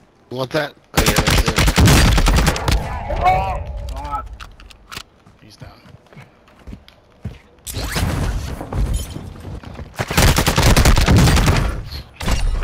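Rapid gunshots fire in loud bursts.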